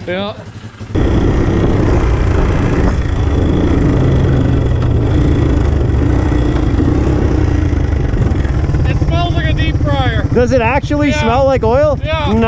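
A small motorbike engine roars steadily while riding.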